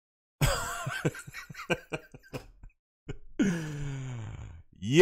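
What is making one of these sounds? A man laughs loudly into a close microphone.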